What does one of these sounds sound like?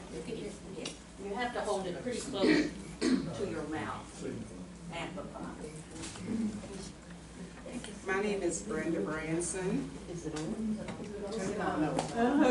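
Elderly women talk among themselves.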